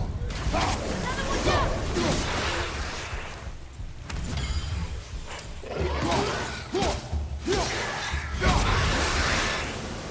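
A fiery burst roars and crackles.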